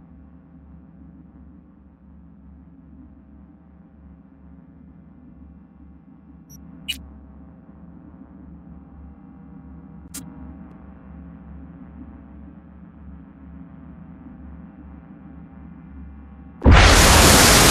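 Low, droning music hums steadily.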